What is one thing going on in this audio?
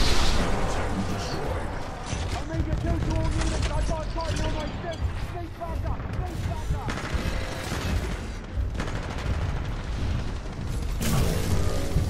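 Heavy mechanical footsteps thud and clank.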